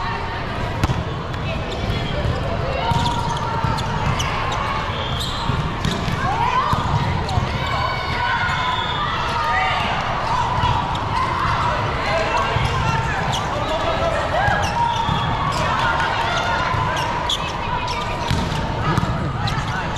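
Young women players call out to each other.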